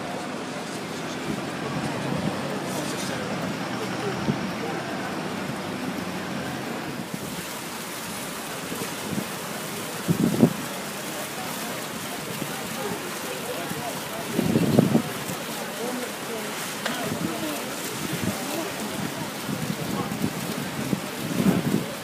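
Wind rumbles outdoors.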